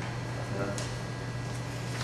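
Paper rustles as a sheet is handed over.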